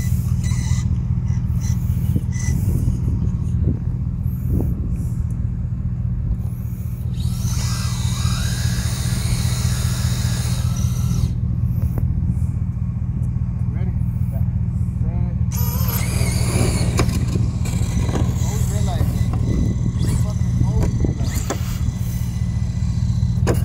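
A toy electric car's motor whines as it speeds across pavement.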